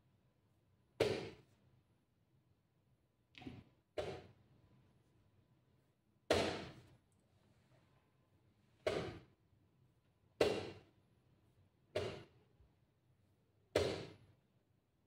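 A chess clock is tapped after each move.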